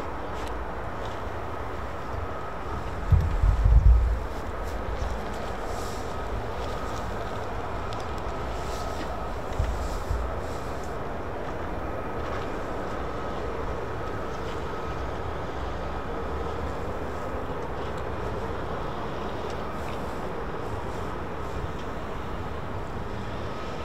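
Wind blows outdoors and buffets the microphone in short gusts.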